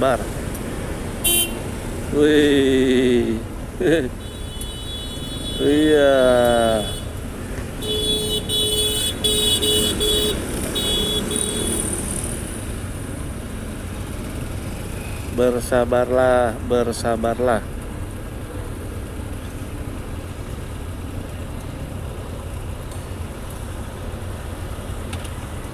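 Motorcycle engines idle nearby in traffic.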